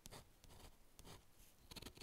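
A stylus scratches lightly across a coated paper sheet.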